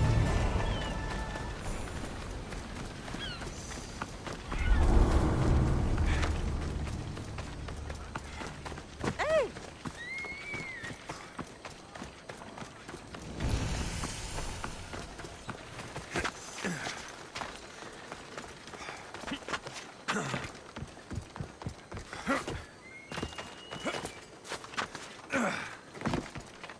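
Footsteps run quickly over gravel and dirt.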